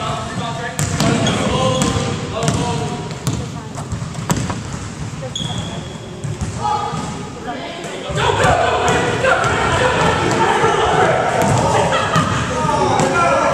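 Young women and men shout and call out to each other during play.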